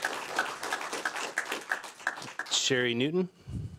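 A small crowd claps.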